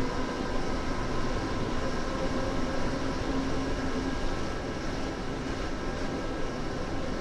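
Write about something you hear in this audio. An electric train motor hums with a steady whine.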